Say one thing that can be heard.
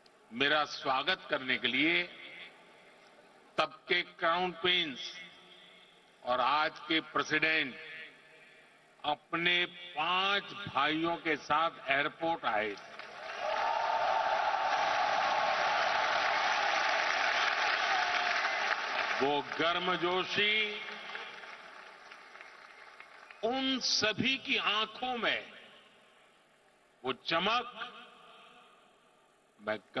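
An elderly man speaks with emphasis into a microphone in a large echoing hall.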